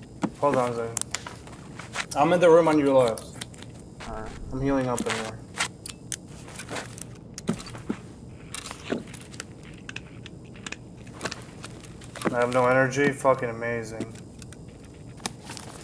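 Footsteps crunch slowly on debris.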